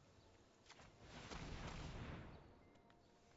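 A magical whoosh sweeps past.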